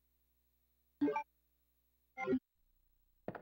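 Menu beeps sound twice.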